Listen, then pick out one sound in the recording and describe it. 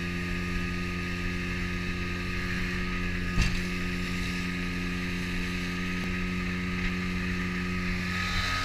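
A boat motor drones steadily at speed.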